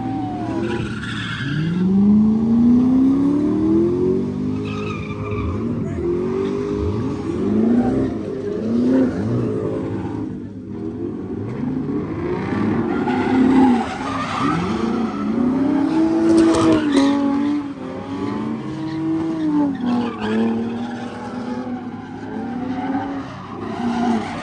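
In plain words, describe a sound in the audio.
Car engines rev hard and rise and fall in pitch close by.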